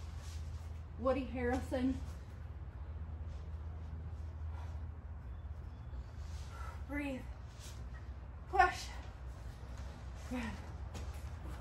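A woman speaks in short bursts, close by.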